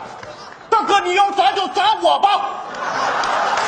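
A man shouts pleadingly, heard through a microphone.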